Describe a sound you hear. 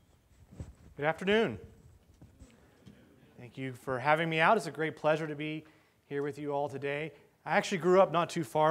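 A man speaks calmly into a microphone over loudspeakers in a large room.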